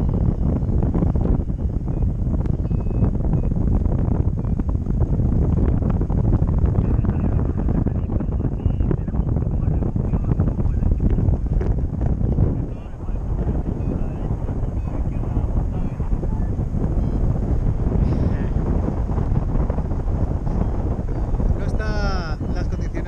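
Strong wind buffets a microphone steadily.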